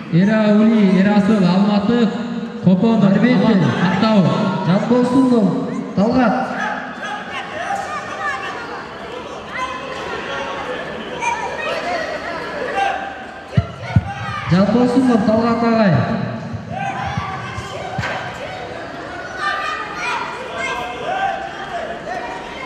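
A crowd of spectators calls out and chatters.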